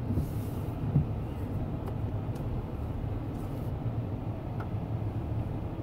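Water sprays and drips onto a car's windscreen.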